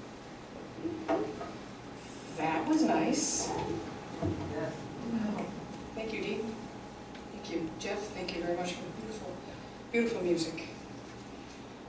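A woman speaks calmly into a microphone in a room with some echo.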